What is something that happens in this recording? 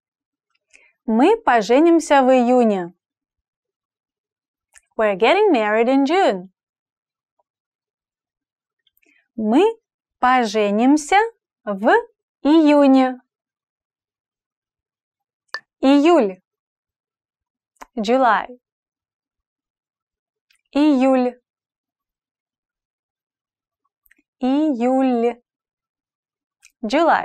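A young woman speaks clearly and slowly into a close microphone, pausing between short phrases.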